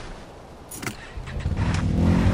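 A quad bike engine starts and revs up.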